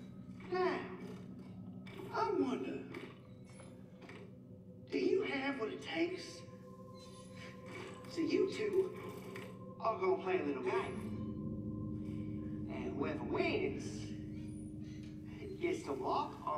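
A man speaks in a taunting, animated way through a television speaker.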